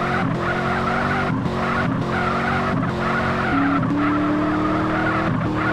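Tyres screech as a car slides sideways.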